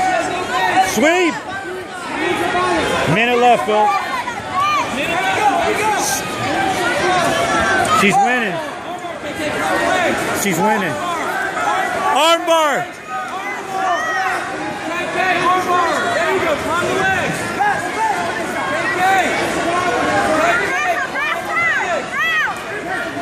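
A crowd of spectators shouts and cheers, echoing in a large hall.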